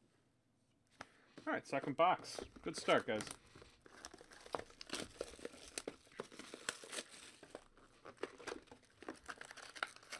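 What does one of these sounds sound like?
Cardboard boxes slide and knock together as they are handled.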